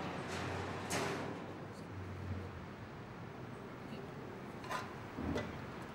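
A wire cage rattles and clinks.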